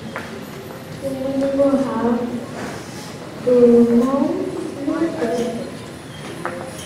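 A young child speaks loudly, heard through a microphone in a large room.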